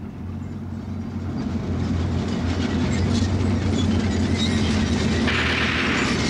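An armoured vehicle's engine rumbles as it approaches, growing louder.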